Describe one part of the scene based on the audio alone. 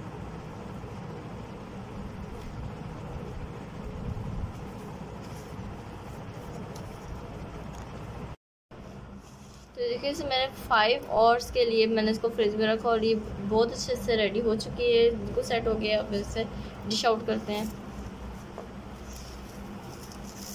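Plastic wrap crinkles as it is stretched over a bowl.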